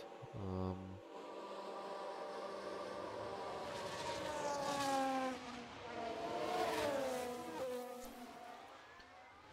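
A racing car engine whines and shifts pitch as a car speeds past.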